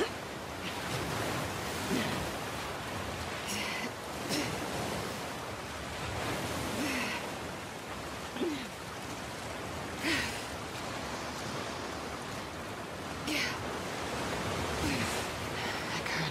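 Water splashes and churns as a person swims.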